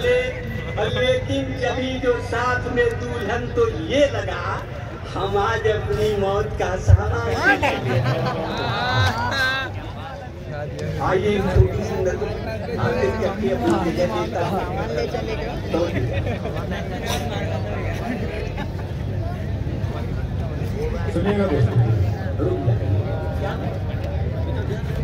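A large crowd murmurs and cheers.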